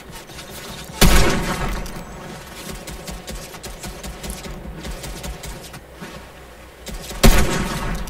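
A rifle fires loud, echoing shots.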